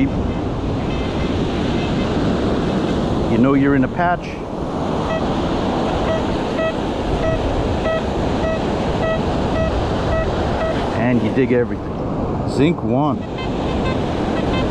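A metal detector ticks with short, steady beeps at an even pace.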